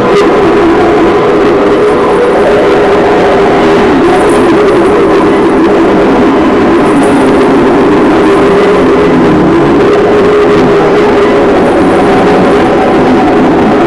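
A television's loudspeaker plays loud, muffled sound throughout.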